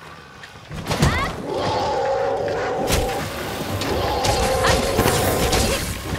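A large creature growls and screeches.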